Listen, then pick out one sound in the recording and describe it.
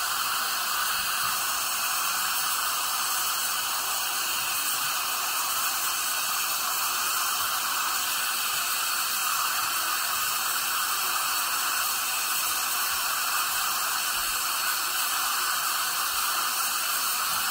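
A dental drill whines at high pitch.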